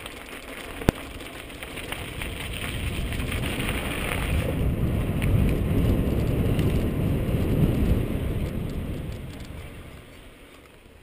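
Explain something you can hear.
Wind buffets the microphone outdoors, growing louder and then dying away.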